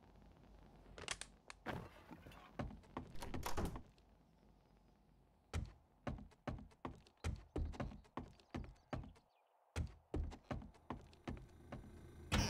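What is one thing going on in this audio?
Footsteps thud steadily across a hard wooden floor.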